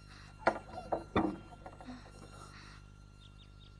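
A wooden door rattles and creaks open.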